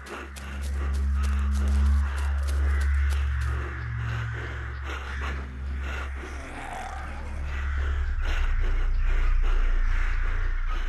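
Footsteps run quickly through tall grass.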